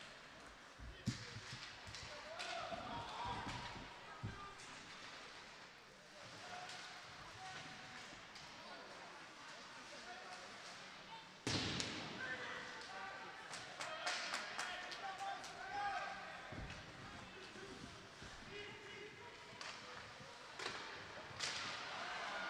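Hockey sticks clack against a puck.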